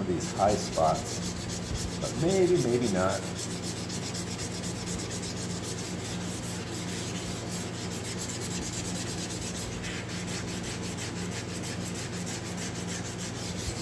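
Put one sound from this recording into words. Sandpaper scrapes rhythmically back and forth over a hard surface.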